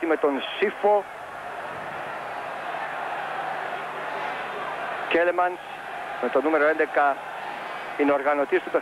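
A large stadium crowd murmurs and roars steadily in the distance.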